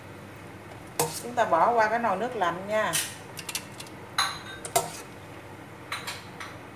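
A metal ladle clinks against a steel pot.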